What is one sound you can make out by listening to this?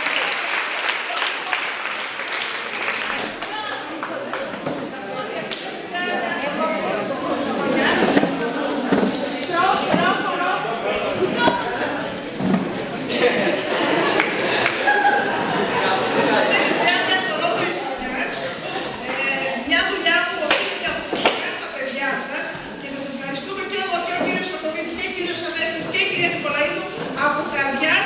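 A woman speaks into a microphone with animation, heard through loudspeakers in an echoing hall.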